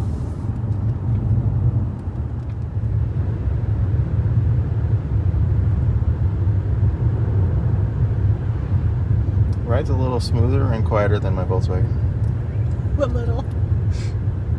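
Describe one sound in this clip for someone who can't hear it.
A car's tyres and engine rumble steadily on a road.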